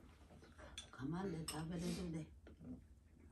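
An elderly woman speaks nearby in a drawn-out, sing-song voice.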